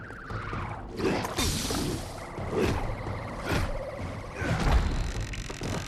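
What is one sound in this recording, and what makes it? A magic bolt whooshes and crackles.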